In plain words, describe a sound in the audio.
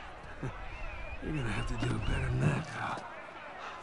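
A crowd of men shouts and jeers.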